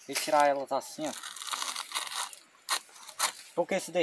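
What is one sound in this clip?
Dry palm fronds crackle as a hand tears them away.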